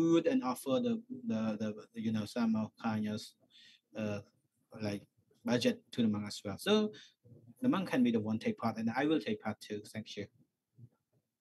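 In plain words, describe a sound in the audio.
A man speaks steadily through a microphone.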